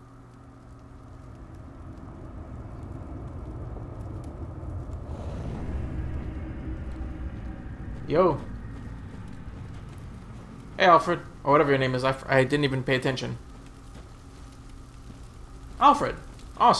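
Fires crackle and roar nearby.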